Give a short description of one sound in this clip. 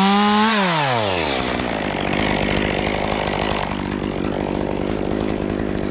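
A chainsaw engine revs high, then drops to a steady rattling idle.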